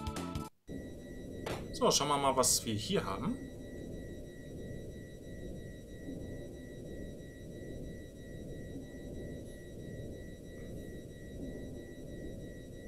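Low, steady droning video game music plays.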